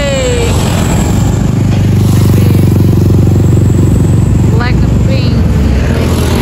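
Motorcycle engines roar loudly as motorbikes speed past on the road.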